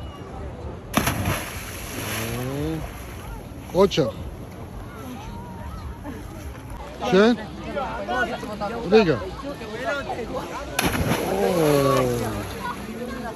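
A body plunges into the sea from a height with a heavy splash.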